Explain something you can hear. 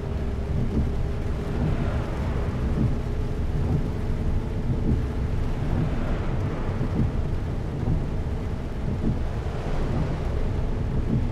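Rain patters on a windshield.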